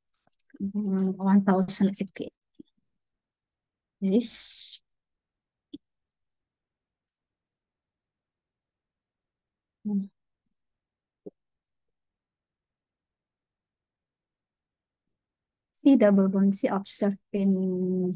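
A woman speaks calmly through an online call, with long pauses.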